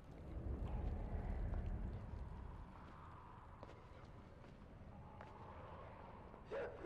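Small footsteps patter across a hard floor.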